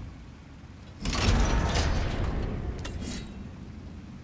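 A heavy metal cage rattles and creaks as it swings on a chain.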